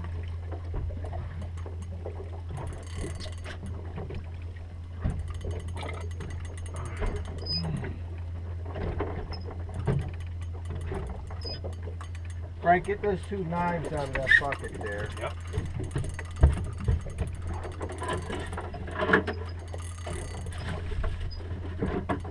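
A fishing reel clicks as a woman winds it.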